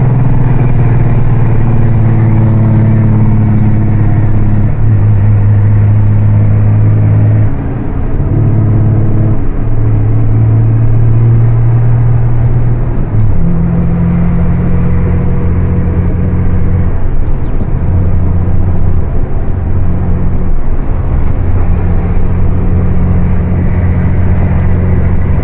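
A diesel truck engine drones, heard from inside the cab while cruising.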